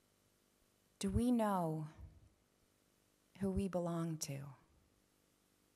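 A woman speaks calmly into a microphone in an echoing hall, in short phrases.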